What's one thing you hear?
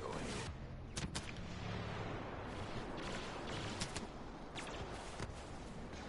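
Blaster guns fire in sharp, quick shots.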